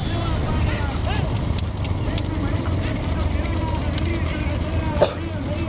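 Bullocks' hooves clatter on a paved road.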